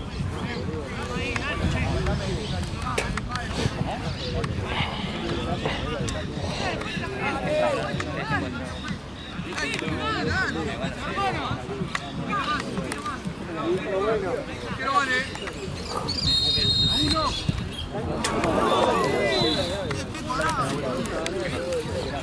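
Young men call out and shout to each other outdoors.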